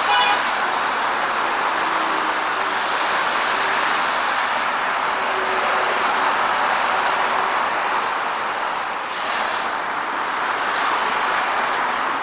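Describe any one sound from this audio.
Traffic roars steadily along a busy highway below.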